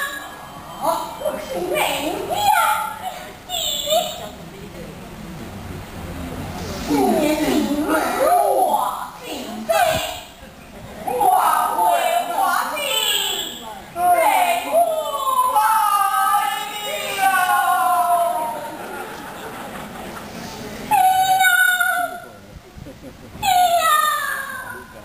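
Several voices sing and call out in turn, close and echoing.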